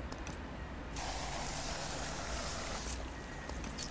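Gel sprays with a hiss.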